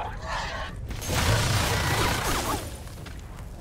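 An energy weapon fires a crackling, hissing beam.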